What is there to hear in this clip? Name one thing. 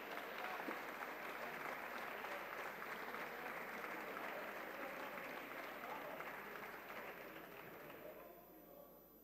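A large crowd applauds in an echoing hall, then the applause fades.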